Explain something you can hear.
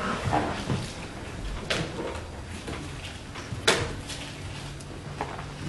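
A man speaks through a microphone, preaching with emphasis.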